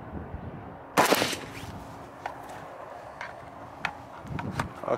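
A rifle's metal parts click and clack as they are worked.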